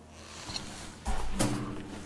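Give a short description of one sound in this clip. A heavy metal handle clanks and rattles as it is pulled.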